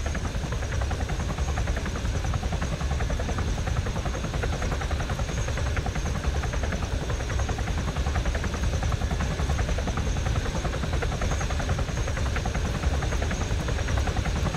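A tandem-rotor helicopter hovers, its rotors thudding.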